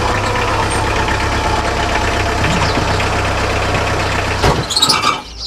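A jeep engine idles with a low steady rumble and then cuts off.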